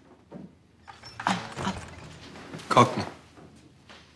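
A man speaks with authority, a little way off.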